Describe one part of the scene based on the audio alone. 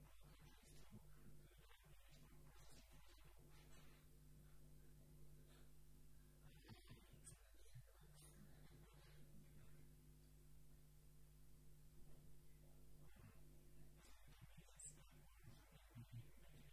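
A young man speaks calmly through a microphone in a large echoing hall.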